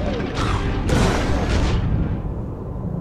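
Blows ring out in a fight.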